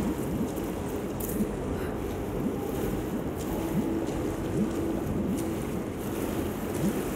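A person wades through shallow water, splashing and sloshing.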